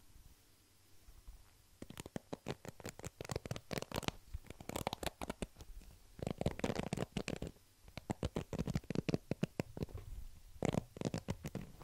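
A hand rubs over a foam microphone cover.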